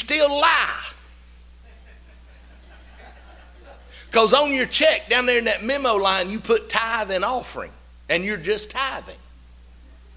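A middle-aged man speaks with animation through a microphone in an echoing hall, pausing between phrases.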